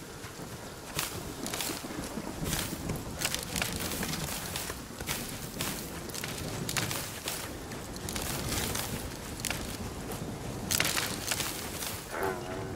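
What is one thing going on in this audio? An axe chops at plants with sharp knocks.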